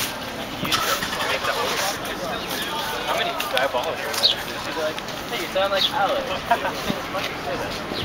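Young men talk casually close by, outdoors.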